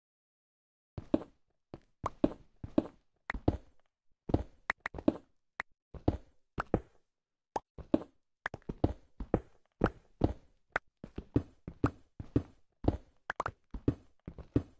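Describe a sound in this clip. A pickaxe chips and cracks at stone in quick, repeated blows.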